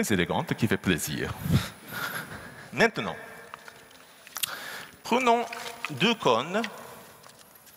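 A young man makes loud, wavering vocal sounds in a large echoing hall.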